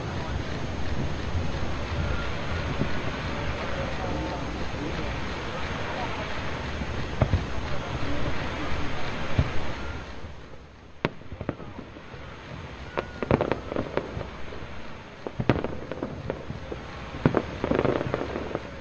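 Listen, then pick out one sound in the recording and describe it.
Fireworks fizz and hiss as they shoot upward.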